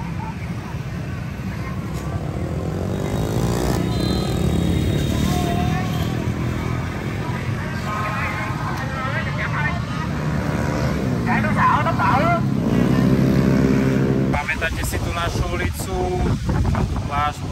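Many motorbike engines hum and drone steadily as they ride past.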